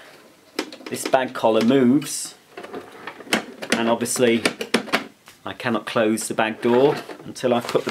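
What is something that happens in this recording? A plastic lid clicks and clatters as it opens and shuts.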